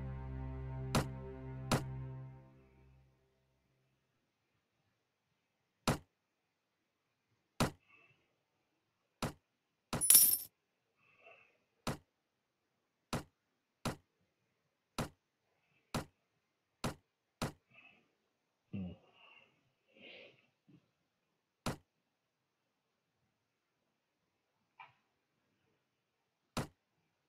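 Short sharp interface clicks sound at irregular intervals.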